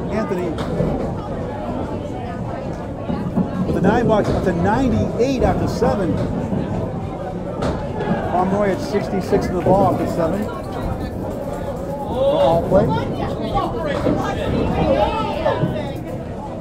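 Men chat nearby in a noisy, echoing hall.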